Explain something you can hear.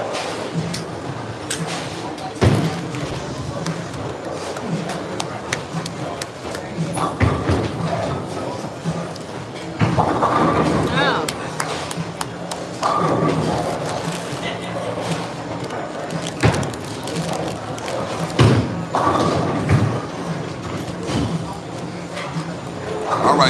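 Men talk and call out with animation nearby.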